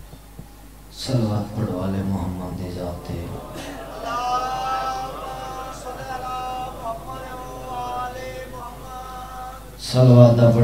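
A second young man recites with emotion into a microphone, heard through loudspeakers.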